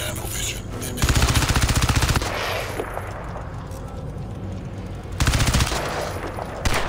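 A rifle fires rapid bursts that echo loudly.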